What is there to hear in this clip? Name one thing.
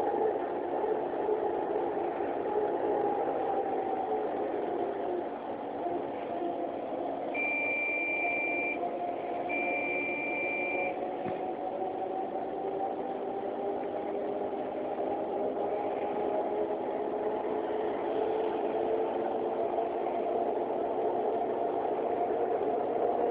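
A bus engine hums steadily as it drives.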